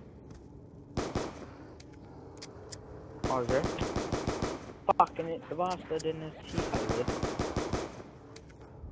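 A pistol fires rapid bursts of shots.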